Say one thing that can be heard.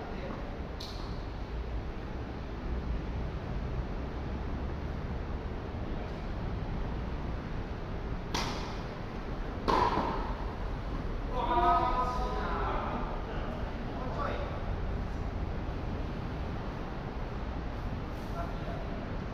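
Tennis rackets hit a ball with sharp pops in a large echoing hall.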